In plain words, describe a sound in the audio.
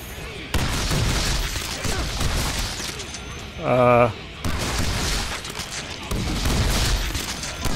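A magical blast bursts with a deep rumbling boom.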